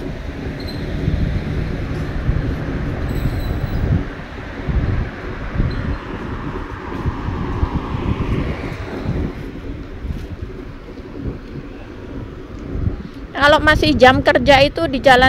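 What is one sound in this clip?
Wind buffets and rumbles in gusts outdoors.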